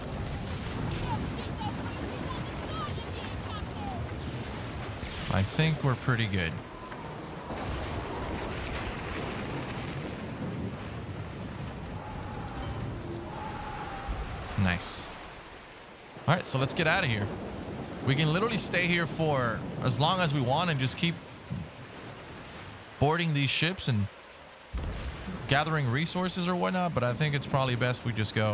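Rough waves churn and splash against a sailing ship's hull.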